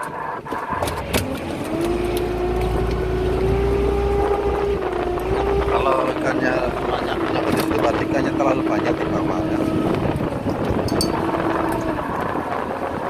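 A motorised winch whines as it hauls in line.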